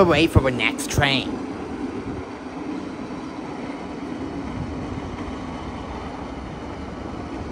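A diesel engine rumbles steadily as a machine rolls slowly along rails.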